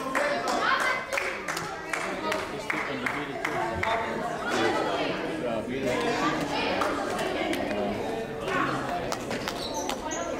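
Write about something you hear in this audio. Children shout and call out in a large echoing gym.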